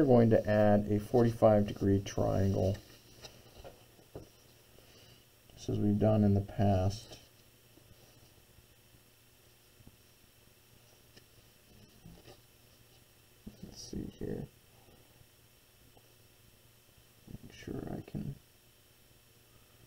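A plastic set square slides and taps on paper.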